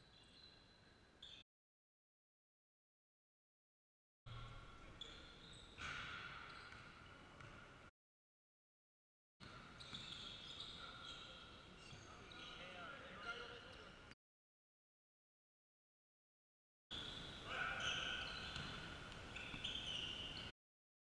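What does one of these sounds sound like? Basketball sneakers squeak on a gym floor.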